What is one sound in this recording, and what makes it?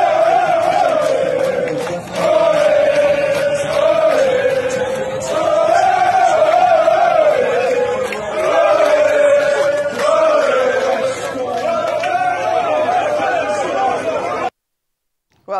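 A crowd sings loudly together.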